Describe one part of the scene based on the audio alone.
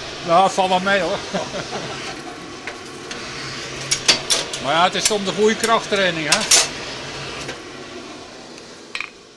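A forge fire roars steadily.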